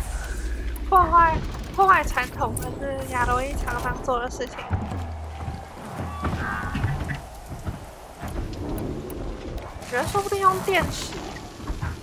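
A mechanical creature lets out shrill, warbling cries.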